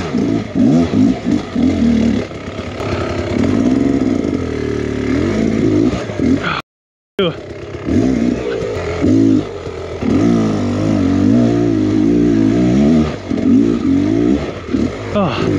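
A dirt bike engine revs up and down close by, sputtering between bursts.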